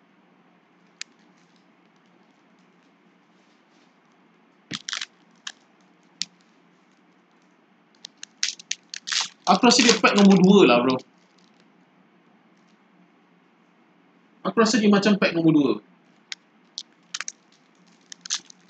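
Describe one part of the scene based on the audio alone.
Foil wrappers crinkle and rustle in hands.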